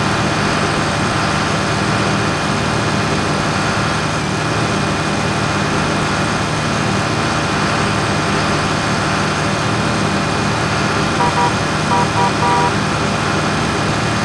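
A tractor engine drones.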